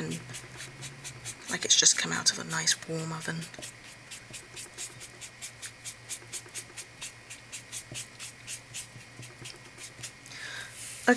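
A pen scribbles rapidly back and forth on paper.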